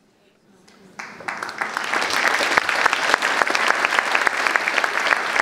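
A large audience applauds in an echoing concert hall.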